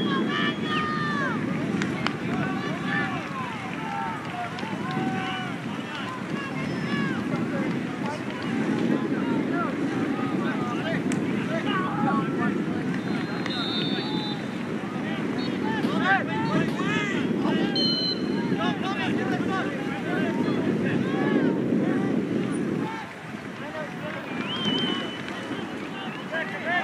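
Spectators chatter and murmur outdoors at a distance.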